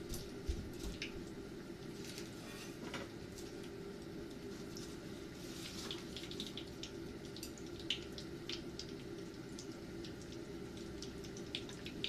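Oil sizzles and crackles as cutlets deep-fry in a frying pan.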